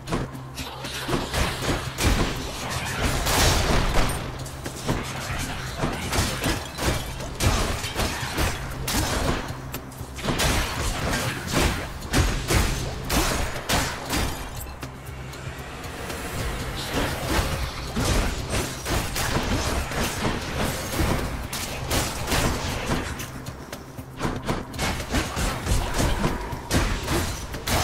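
Sword slashes and magic blasts whoosh and crack in quick bursts.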